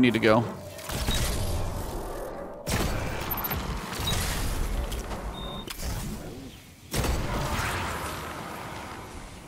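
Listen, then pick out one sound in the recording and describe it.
A heavy weapon fires with deep booming blasts.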